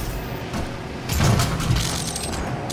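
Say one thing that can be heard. A heavy blow lands with a thud and a wet squelch.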